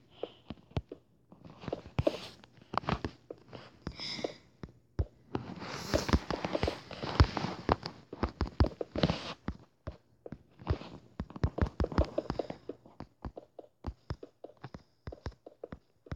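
Game blocks are placed with short, soft thuds.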